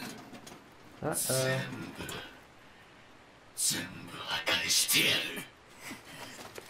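A man speaks slowly and menacingly.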